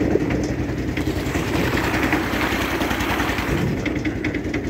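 Water rushes and splashes along a metal boat's hull.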